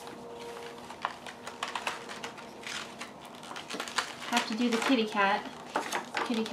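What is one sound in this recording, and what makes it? A plastic sticker sheet crinkles and rustles as stickers are peeled off.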